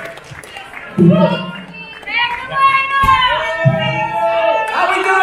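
A man sings into a microphone, heard over loudspeakers in a large hall.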